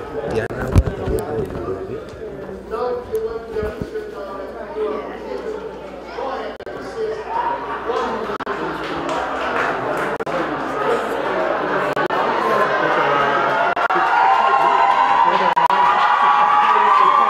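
Several people talk and chatter loudly close by, their voices overlapping.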